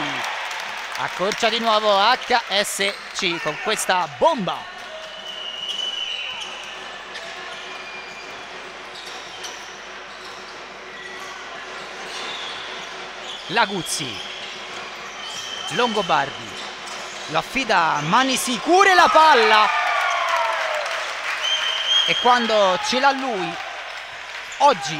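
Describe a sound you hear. Young men shout across an echoing hall.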